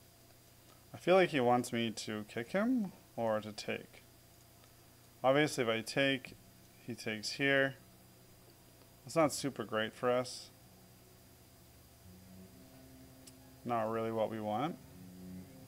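A man speaks calmly and thoughtfully into a close microphone, in short bursts.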